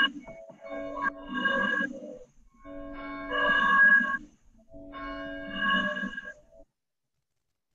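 A woman sings in long held notes over an online call.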